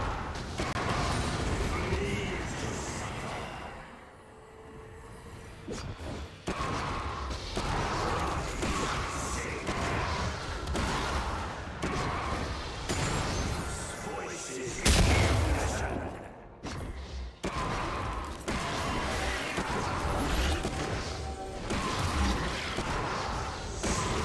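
Game combat effects thud and crackle as characters trade blows.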